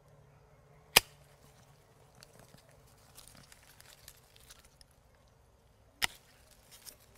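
Twigs snap sharply.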